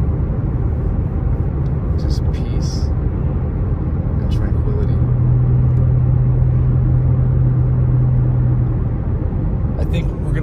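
Tyres rumble on asphalt.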